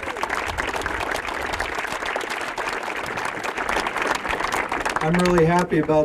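A crowd applauds loudly outdoors.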